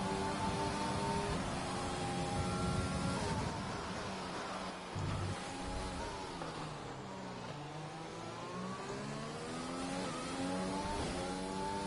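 A racing car engine roars at high revs, dropping in pitch while braking and rising again as it accelerates.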